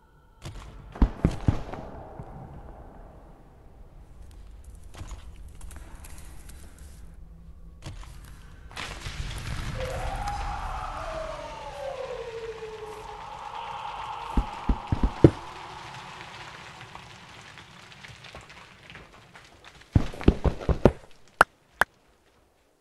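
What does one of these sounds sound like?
A pickaxe chips and breaks stone blocks.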